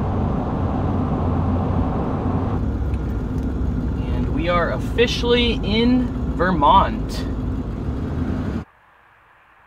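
A car's engine and tyres rumble steadily along a road.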